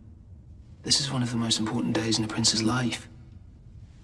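A young man speaks softly and calmly nearby.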